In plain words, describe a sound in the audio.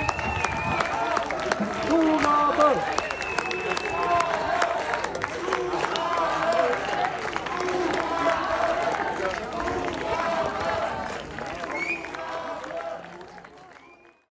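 Men and women in the audience cheer and shout.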